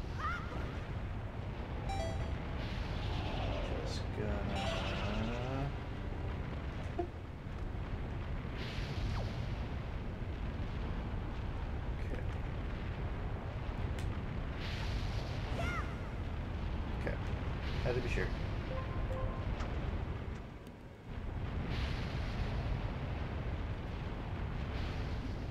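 A jet of fire bursts upward with a loud whoosh.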